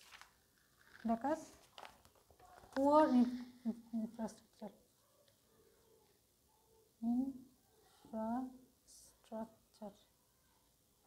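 A woman speaks calmly, as if teaching, close by.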